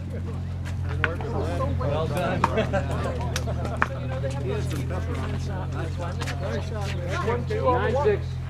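Older men talk casually.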